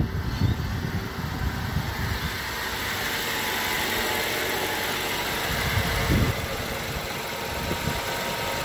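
A car engine idles steadily nearby.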